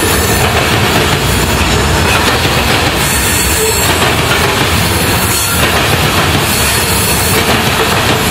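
Freight cars rumble and clatter loudly past on the rails.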